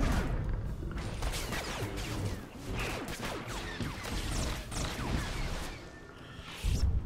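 Energy blades clash and crackle rapidly in a fight.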